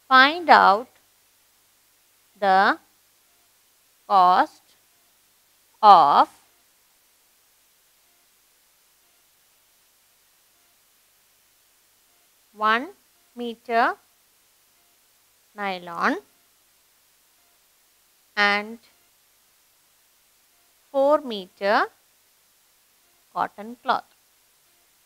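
A young woman reads out words slowly through a close microphone, pausing between them.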